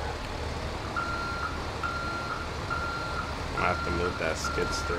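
A truck's reverse alarm beeps at an even pace.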